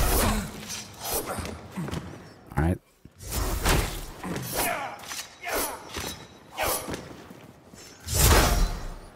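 Blades whoosh and strike in quick bursts of combat.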